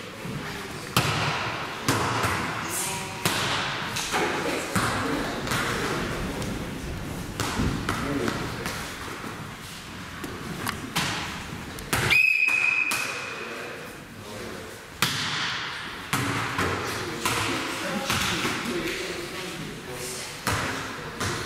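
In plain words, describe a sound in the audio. A volleyball thumps against hands and arms in a large echoing hall.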